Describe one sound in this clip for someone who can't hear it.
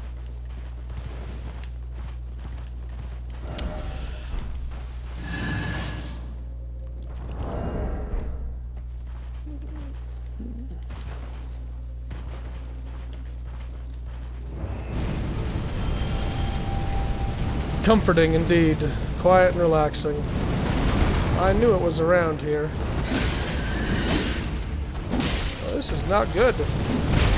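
A horse gallops over snow.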